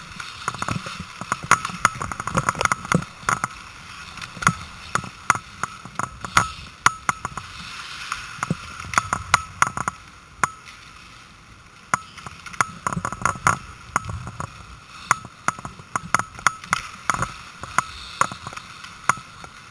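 Hockey sticks clack sharply against a puck and the ice in an echoing rink.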